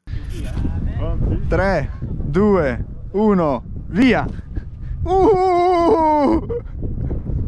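A man calls out loudly nearby.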